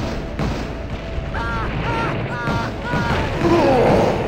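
A gun fires repeatedly with heavy bangs.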